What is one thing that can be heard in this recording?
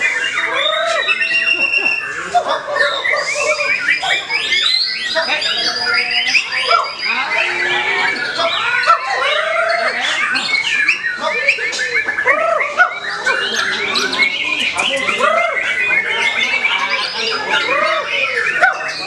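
A caged songbird sings close by in rapid, varied whistles and chirps.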